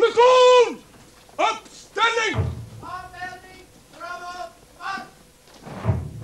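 A group of women sing together.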